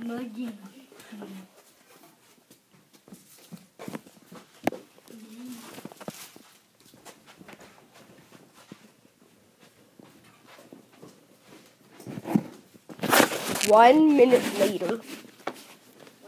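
A young child talks and squeals nearby.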